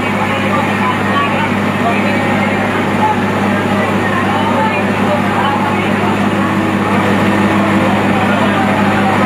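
A crowd of people talks and calls out outdoors.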